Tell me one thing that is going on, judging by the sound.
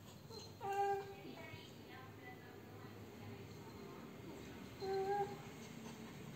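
A cat meows briefly close by.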